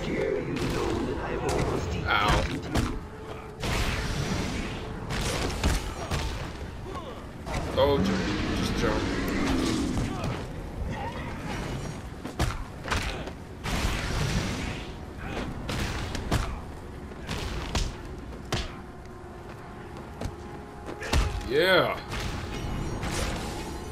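Bones rattle and clatter as skeletons fall apart.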